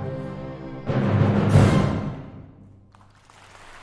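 An orchestra plays a loud closing chord in a large echoing hall.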